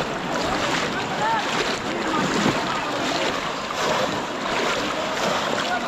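Water splashes as people wade through a flooded pond.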